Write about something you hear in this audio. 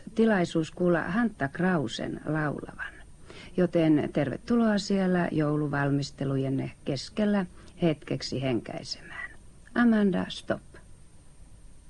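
A woman speaks calmly into a microphone, close by.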